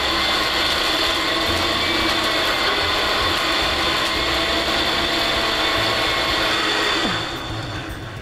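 A blender whirs loudly and steadily, then winds down.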